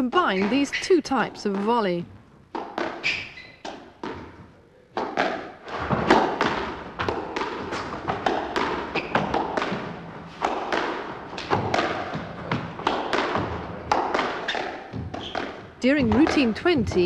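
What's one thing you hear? A squash ball smacks against a wall and racquets with sharp, echoing knocks.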